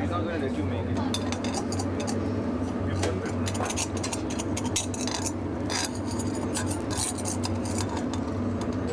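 Batter sizzles and crackles in a hot pan.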